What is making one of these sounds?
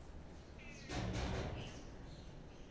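A cloth flaps and snaps as a woman shakes it out.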